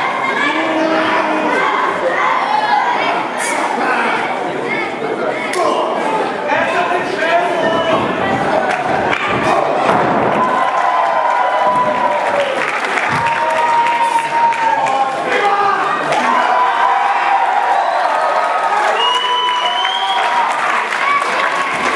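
Wrestlers thud onto a ring mat.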